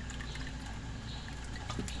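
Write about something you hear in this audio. Thick liquid trickles from a bottle into a small cup.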